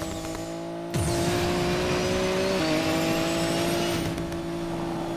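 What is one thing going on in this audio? A car engine revs up sharply with a whoosh of boost.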